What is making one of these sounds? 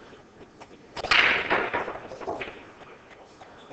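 A cue ball cracks into a rack of pool balls, which clatter apart and roll.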